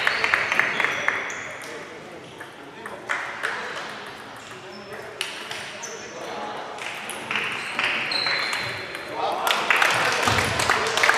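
A crowd of players and onlookers murmurs in a large echoing hall.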